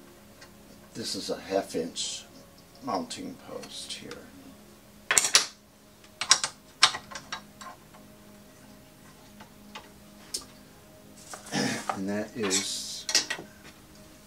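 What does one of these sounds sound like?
Metal parts of a device click and clack as a man adjusts them.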